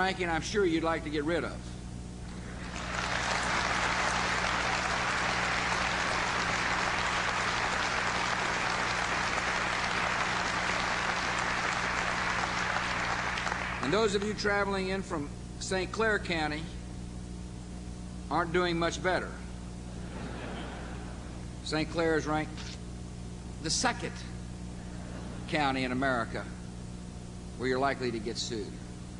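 A middle-aged man speaks firmly through a microphone.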